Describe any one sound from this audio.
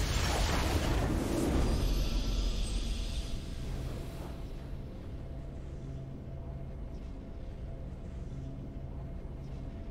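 A triumphant game fanfare swells.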